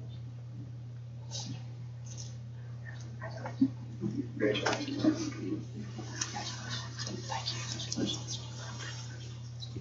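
Several people murmur quietly in a large room.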